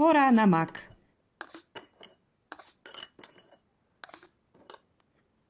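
A spoon tips small seeds into a plastic bottle with soft ticks.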